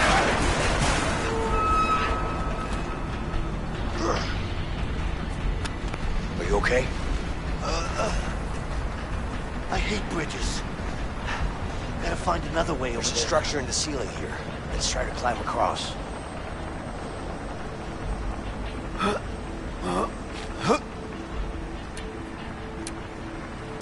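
Footsteps clang on metal stairs and grating.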